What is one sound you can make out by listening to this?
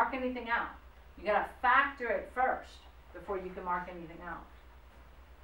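A woman speaks calmly, close by in a room.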